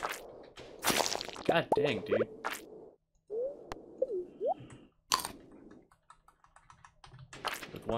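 Video game sound effects chime and pop as items are picked up.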